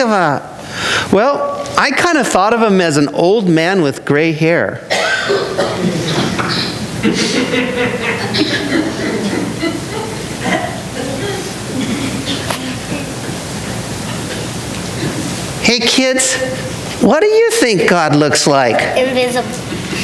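A man speaks in a high, playful puppet voice with lively rises and falls in pitch.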